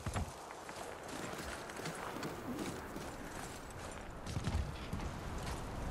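Boots crunch on snow and rock.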